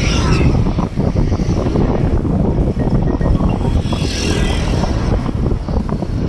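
A car passes by on a road.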